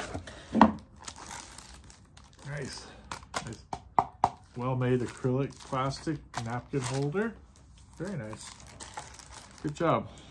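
A plastic bag crinkles and rustles in a man's hands.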